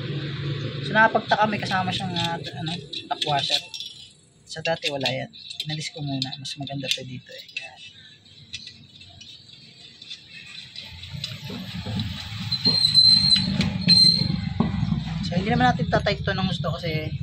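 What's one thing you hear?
A hex key turns a small bolt with light metallic clicks.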